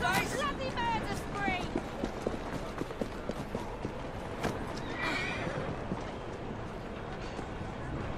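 Footsteps tap on stone pavement.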